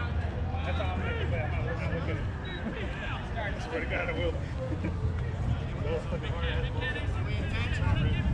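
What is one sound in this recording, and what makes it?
Several men call out and chatter outdoors.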